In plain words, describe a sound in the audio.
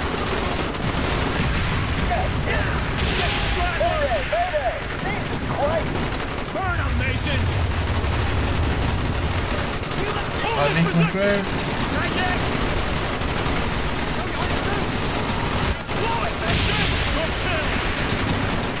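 Gunfire rattles continuously in a video game.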